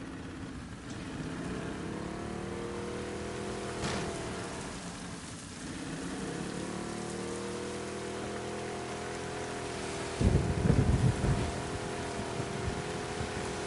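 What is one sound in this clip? An outboard motor hums steadily as a small boat moves across water.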